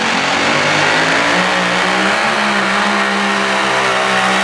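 A pulling tractor's engine revs higher.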